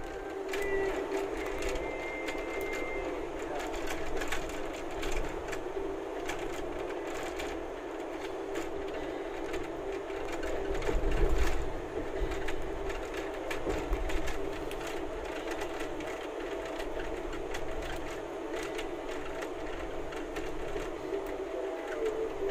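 Rain patters on the windscreen.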